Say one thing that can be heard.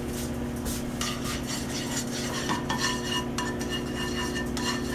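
A wooden spatula scrapes and stirs in a frying pan.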